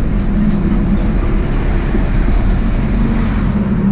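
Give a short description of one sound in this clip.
A bus engine rumbles as it passes close by.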